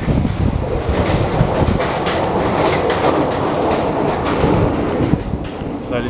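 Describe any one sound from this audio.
A train rushes past with a loud roaring rumble.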